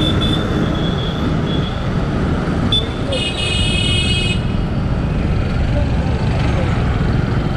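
Motorcycles and auto-rickshaws drone along in dense traffic.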